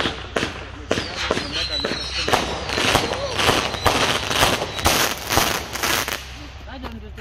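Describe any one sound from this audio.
Fireworks crackle and pop outdoors.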